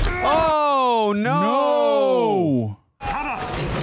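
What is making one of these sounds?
A young man speaks with excitement into a headset microphone.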